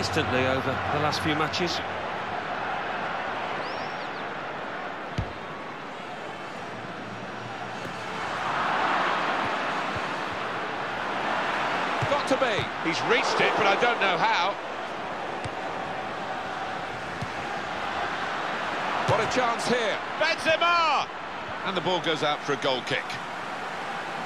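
A large stadium crowd roars and murmurs.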